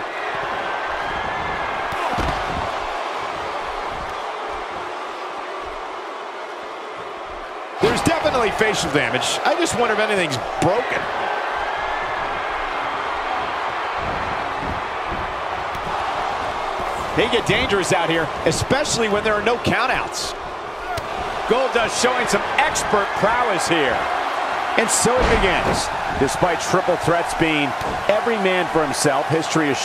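A large crowd cheers and murmurs in a big arena.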